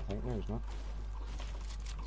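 A pickaxe strikes wood with a dull knock.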